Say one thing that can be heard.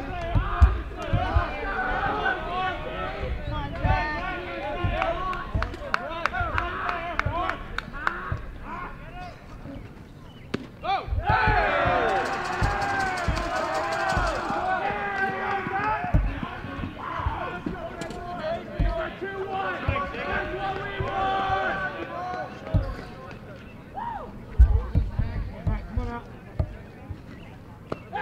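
Young men talk and call out loudly outdoors nearby.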